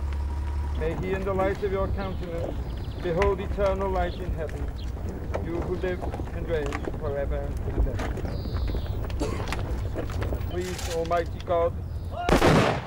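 An elderly man speaks calmly and solemnly outdoors.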